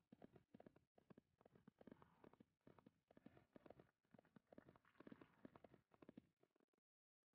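A horse's hooves pound the ground at a fast, even gallop.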